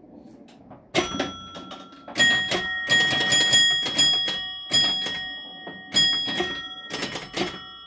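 A pinball machine's bells chime with ringing tones.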